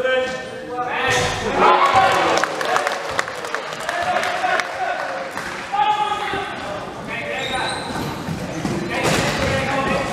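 Players in wheelchairs shout to each other in a large echoing hall.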